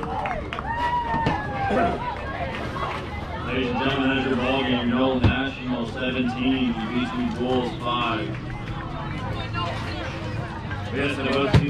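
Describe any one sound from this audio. Young players call out and chatter across an open field outdoors.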